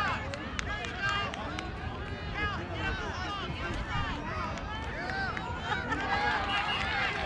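A crowd of adults and children talk and call out nearby outdoors.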